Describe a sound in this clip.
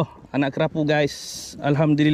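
A fish splashes as it is lifted out of the water.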